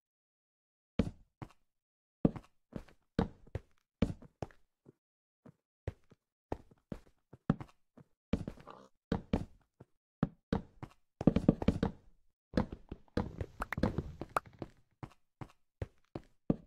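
Short soft knocks sound as small objects are set down one after another.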